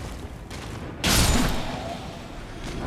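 Wooden crates smash and splinter.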